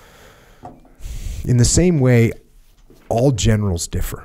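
A man speaks into a close microphone in a deep, firm voice.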